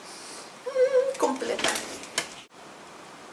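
A young woman hums and moans with delight close by.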